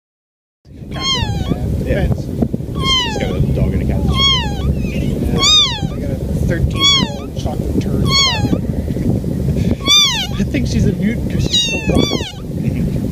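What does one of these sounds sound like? A tiny kitten mews repeatedly in short, high cries.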